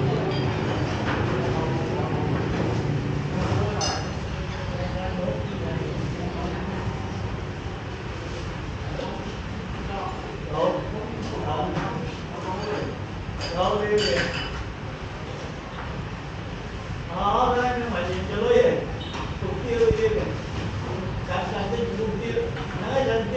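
People chatter quietly in the background.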